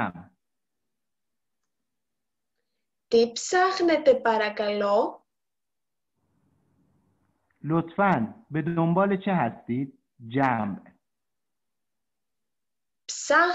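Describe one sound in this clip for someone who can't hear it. A young woman speaks calmly and clearly, close to a microphone, in short phrases with pauses.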